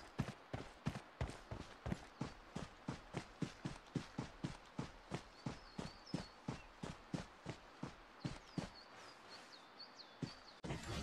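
Footsteps thud quickly and evenly on grass as someone runs.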